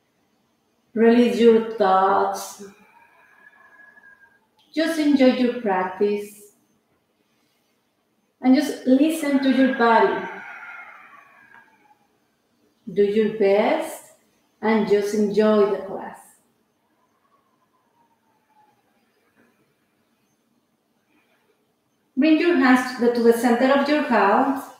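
A woman speaks calmly and slowly in short phrases, with long pauses.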